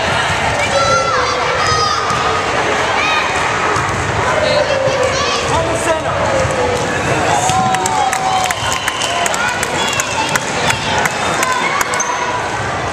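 Girls shout and cheer throughout a large echoing gym.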